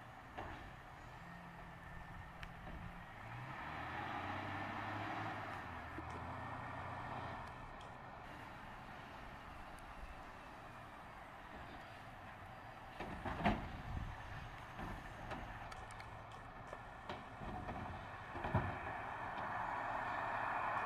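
A garbage truck engine idles and rumbles nearby.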